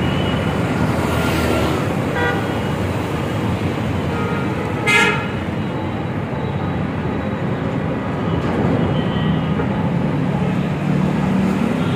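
Traffic rumbles past on a nearby street.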